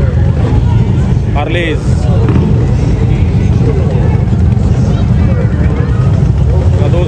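Motorcycle engines idle and rumble loudly nearby.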